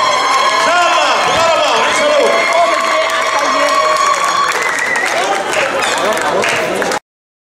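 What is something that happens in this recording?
A large crowd cheers and sings loudly outdoors.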